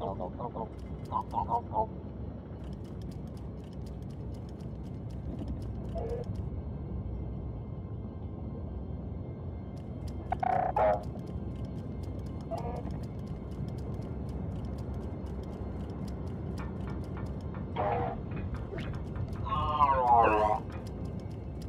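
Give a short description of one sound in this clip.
A small robot chirps and warbles in short electronic bursts.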